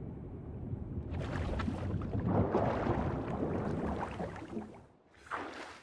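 Water churns and bubbles around a swimmer.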